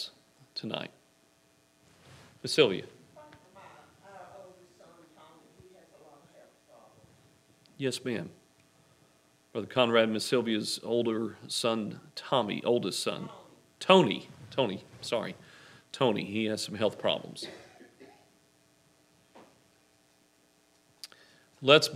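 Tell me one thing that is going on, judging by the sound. A man speaks calmly through a microphone in a room with a slight echo.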